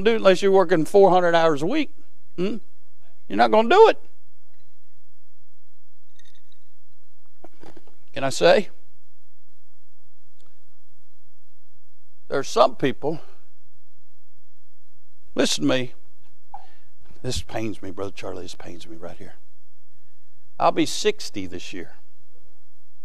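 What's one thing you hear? A man preaches through a microphone in a large hall, speaking in bursts with long pauses.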